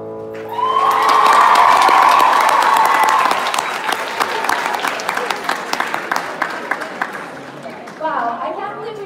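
A large audience claps.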